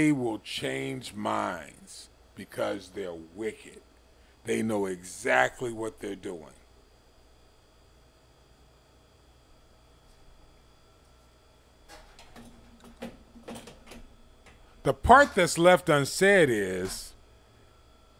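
An elderly man speaks with animation, close into a microphone, with pauses.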